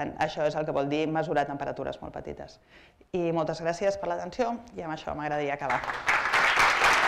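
A woman speaks calmly through a microphone in a large room.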